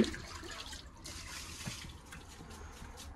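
Water splashes as it is poured from a bucket.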